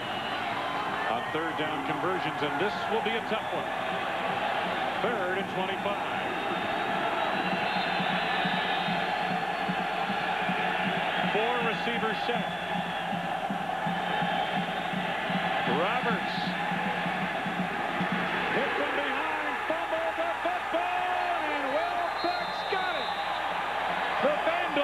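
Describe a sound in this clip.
A large stadium crowd roars steadily throughout.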